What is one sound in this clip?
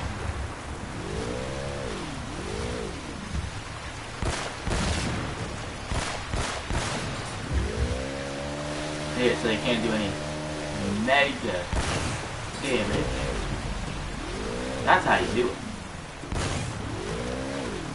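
A jet ski engine revs up and down.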